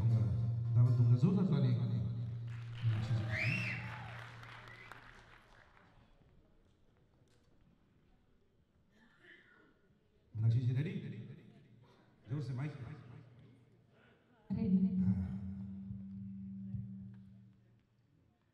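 A man sings into a microphone through loudspeakers in a large hall.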